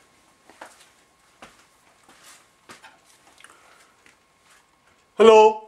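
Soft rustling and faint knocks come from a man moving about close by.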